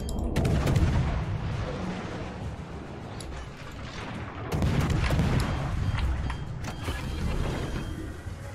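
Naval guns boom and shells explode with deep rumbling blasts.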